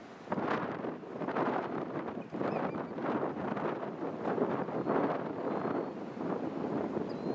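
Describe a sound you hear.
A jet airliner roars low overhead as it comes in to land.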